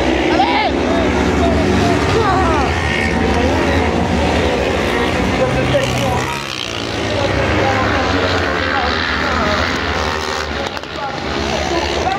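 A crowd of spectators chatters close by.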